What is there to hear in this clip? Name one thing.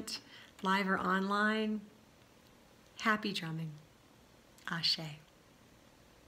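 A middle-aged woman speaks warmly and close by, in short phrases.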